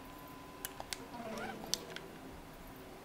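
A metal lighter lid clicks.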